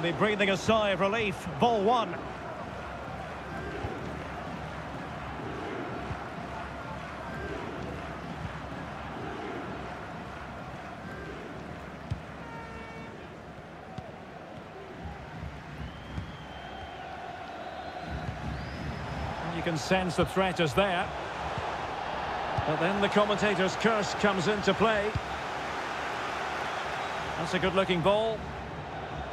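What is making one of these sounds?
A large crowd murmurs and cheers steadily in a big stadium.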